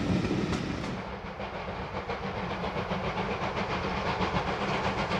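A steam locomotive puffs in the distance as it approaches.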